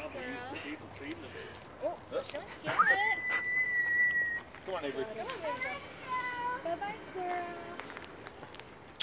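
A young child talks and squeals nearby.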